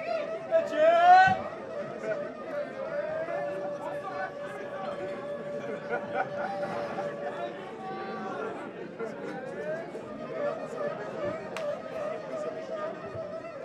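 A saxophone plays long, wavering notes.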